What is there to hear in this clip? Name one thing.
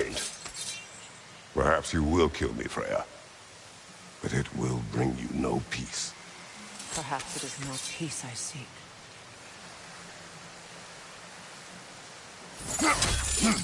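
A waterfall rushes nearby.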